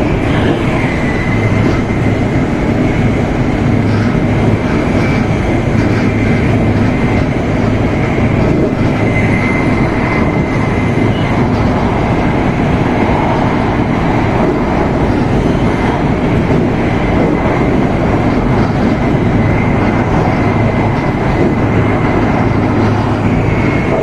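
A high-speed train rumbles and roars along at speed, heard from inside the carriage.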